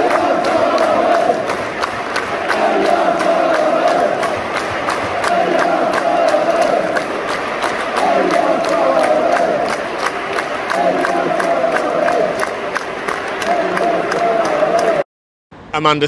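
A large stadium crowd sings loudly together.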